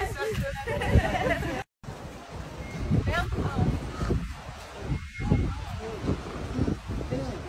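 Young women chatter and laugh close by.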